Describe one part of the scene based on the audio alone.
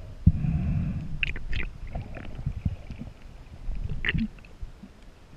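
Water splashes and bubbles close by, muffled underwater.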